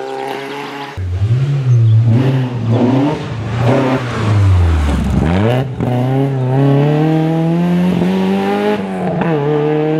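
A rally car engine roars up close and speeds away.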